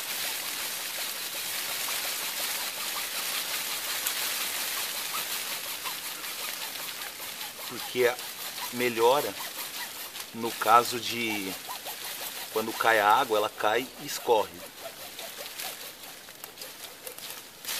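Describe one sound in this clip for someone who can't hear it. A hacksaw cuts back and forth through a branch.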